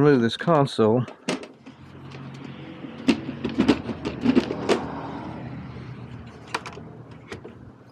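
A plastic panel clatters and creaks as it is pried open.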